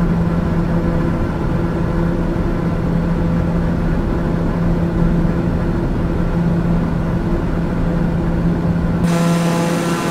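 A propeller plane's engine drones steadily, heard from inside the cabin.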